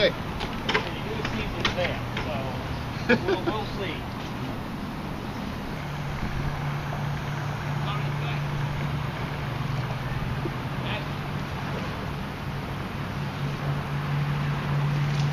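Water laps gently against a rocky shore.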